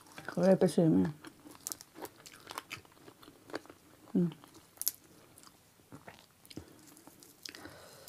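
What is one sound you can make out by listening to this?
Fresh herb stalks snap and crackle as they are torn apart.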